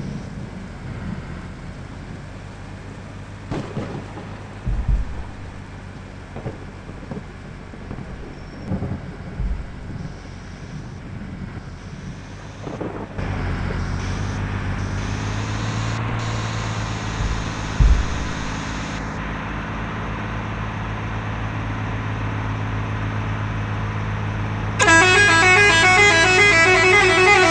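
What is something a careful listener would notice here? A heavy truck engine hums steadily, growing louder partway through.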